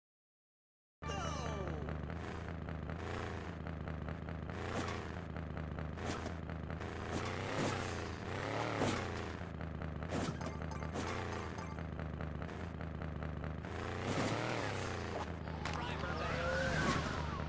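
An engine drones and revs up and down.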